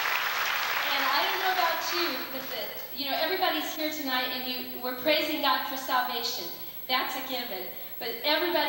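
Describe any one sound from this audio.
A woman speaks into a microphone over loudspeakers, warmly and with animation.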